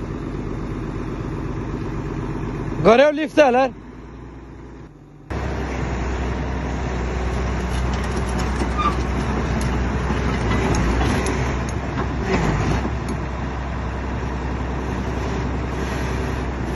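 A heavy diesel engine rumbles steadily nearby.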